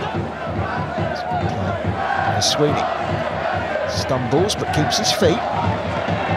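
A large crowd chants and cheers in an open stadium.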